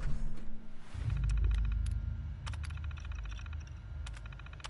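A computer terminal hums low and steadily.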